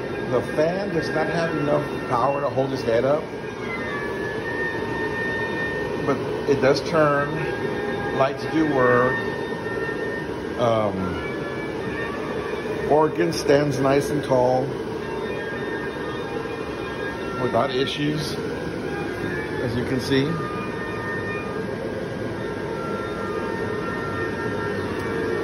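An inflatable's blower fan hums steadily.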